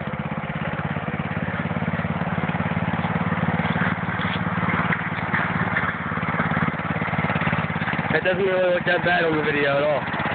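A lawn tractor engine chugs steadily close by.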